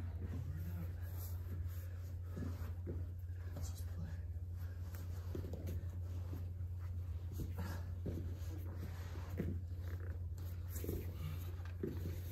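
Two men grapple and thump on a padded mat.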